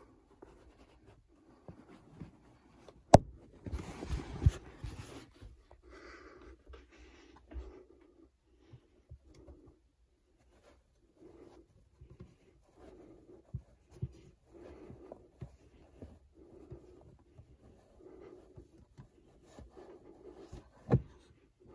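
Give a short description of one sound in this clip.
Caps rustle and tap softly as a hand sorts through them.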